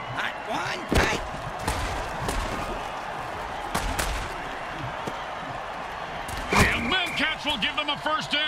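Armoured players crash together in a heavy tackle.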